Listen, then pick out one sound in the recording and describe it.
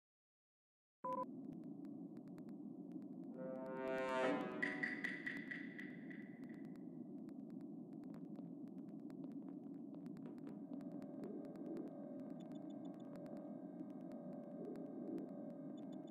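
A low game ambience hums steadily.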